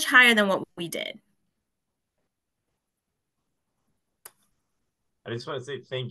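A young woman speaks calmly over an online call, pausing between phrases.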